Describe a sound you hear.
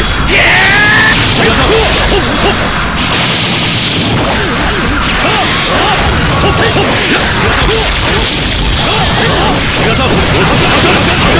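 Swords clash and slash rapidly.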